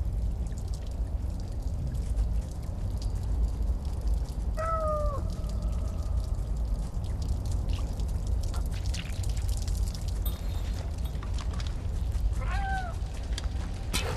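A cat's paws patter softly over rubble.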